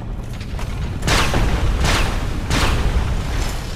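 A weapon swishes through the air.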